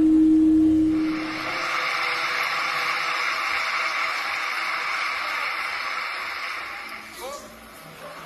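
A large crowd cheers and murmurs.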